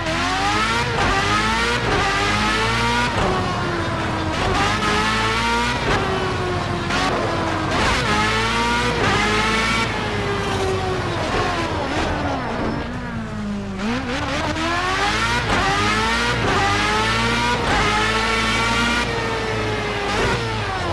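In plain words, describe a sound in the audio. An open-wheel racing car engine screams at high revs, climbing and dropping sharply with quick gear changes.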